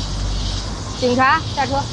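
A young woman speaks clearly up close.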